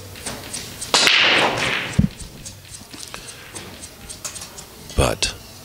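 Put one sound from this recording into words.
Pool balls clack against each other and roll across the table.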